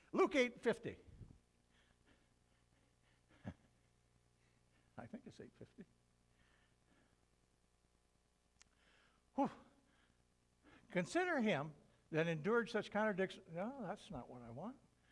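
An elderly man preaches with animation in a room with a slight echo, pausing between phrases.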